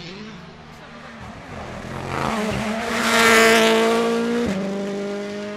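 A rally car engine roars past at speed, shifting gears.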